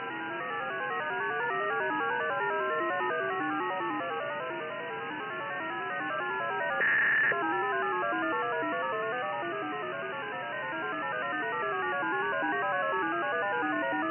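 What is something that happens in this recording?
A radio receiver plays a warbling digital signal of quickly stepping tones over faint hiss.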